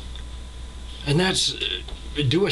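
A middle-aged man speaks calmly and close up, heard through a computer microphone.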